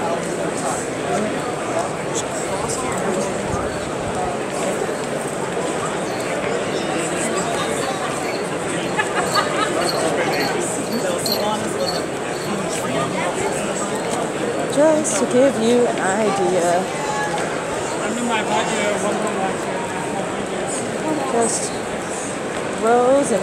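A crowd of men and women chatter all around in a large echoing hall.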